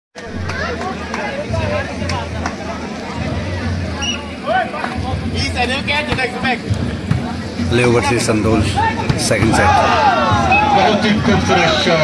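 A crowd of men and boys chatters and shouts outdoors.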